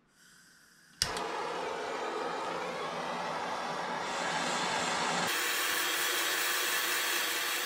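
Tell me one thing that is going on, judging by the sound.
A gas torch roars with a steady, loud hiss.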